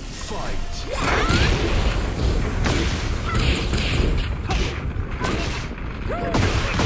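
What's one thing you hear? Punches and kicks land with sharp thuds and cracks.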